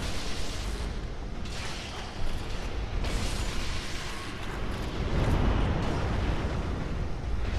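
Electric crackles and zaps burst out in loud waves.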